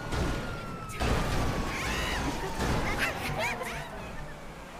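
Car tyres skid and hiss.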